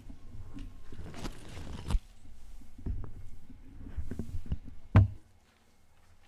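A man moves about and handles objects.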